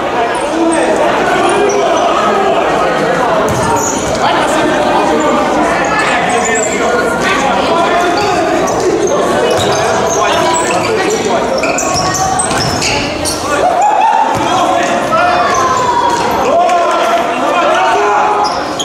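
Young men shout and call out to one another across an echoing hall.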